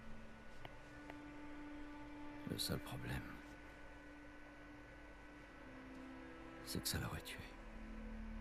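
A middle-aged man speaks quietly and calmly, close by.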